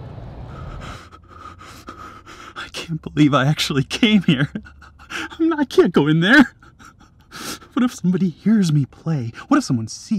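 A young man talks nervously and laughs close by.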